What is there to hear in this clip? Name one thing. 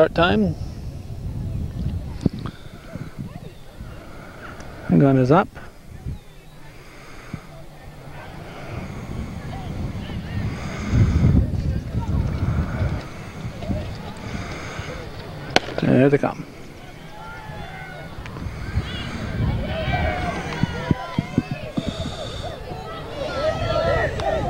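A crowd of spectators talks and murmurs outdoors.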